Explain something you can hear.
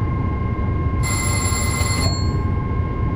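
A warning alarm sounds briefly.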